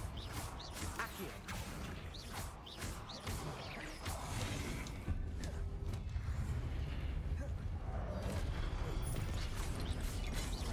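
Magic spells crackle and zap in quick bursts.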